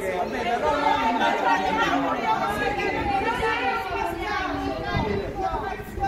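A crowd of women shouts and chants together outdoors.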